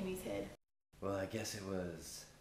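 A young man speaks casually close by.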